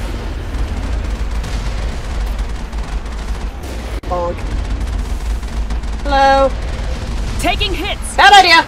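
A heavy gun fires repeatedly.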